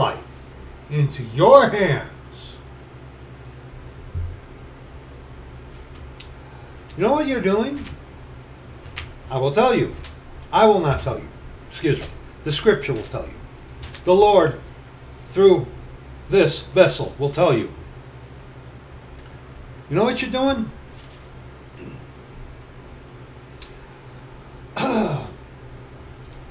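A middle-aged man speaks close by in short bursts with pauses.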